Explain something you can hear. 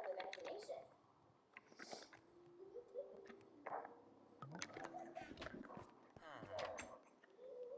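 Soft clicks sound as items are moved in a game menu.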